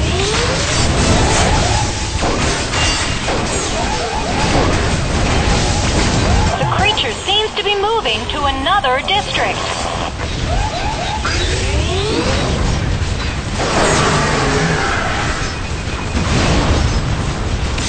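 Laser shots zap and whine repeatedly in a video game.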